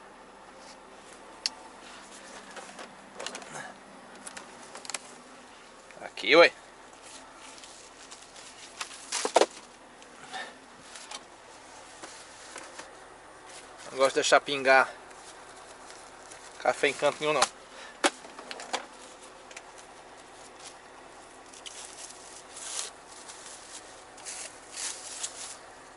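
A plastic bag rustles and crinkles as hands handle it.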